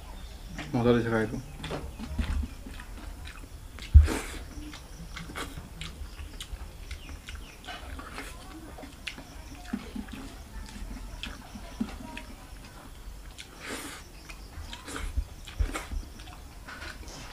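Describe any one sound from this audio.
Fingers squish and mix rice.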